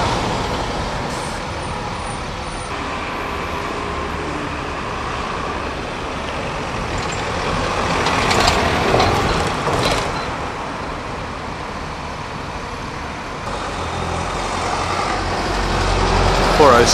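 Bus engines rumble as buses drive past.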